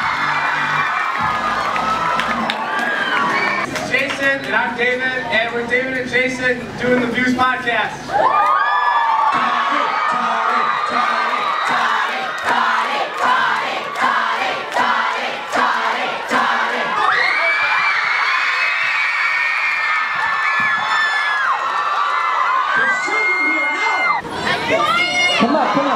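An audience cheers and screams loudly throughout.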